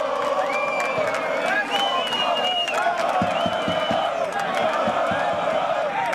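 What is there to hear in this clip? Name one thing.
Men shout at one another up close.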